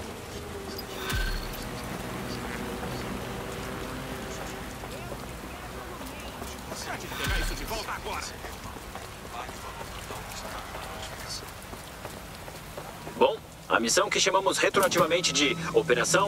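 Footsteps walk on stone.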